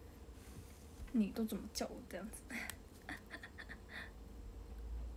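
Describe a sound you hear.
A young girl talks close by, light and playful.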